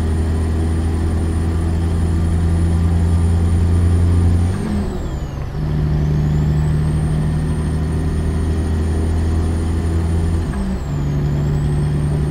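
A heavy truck engine drones steadily at speed.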